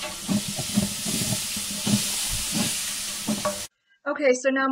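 Food sizzles and hisses in a hot pot.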